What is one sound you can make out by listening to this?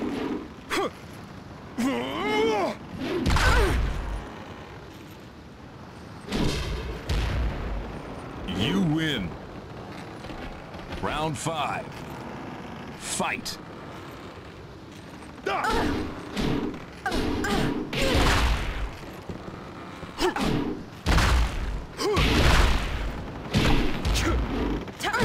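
Punches and kicks land with heavy, sharp thuds.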